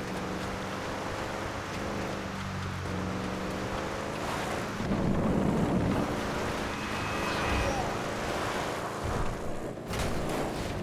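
A car engine hums steadily as it drives.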